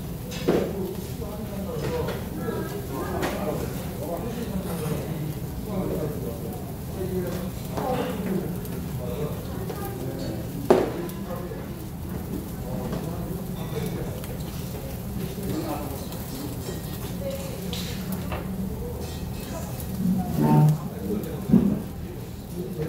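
Meat sizzles steadily on a hot grill.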